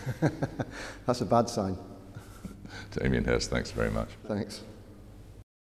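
A middle-aged man speaks calmly and cheerfully, close to a microphone.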